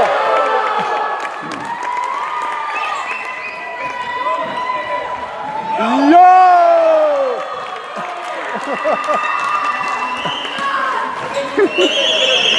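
Children shout and call out during a game.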